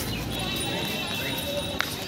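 Footsteps scuff on paving close by.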